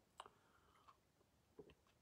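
An elderly man sips from a glass.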